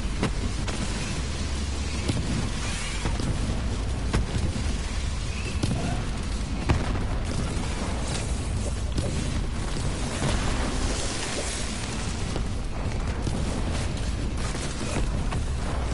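A futuristic gun fires rapid energy bursts.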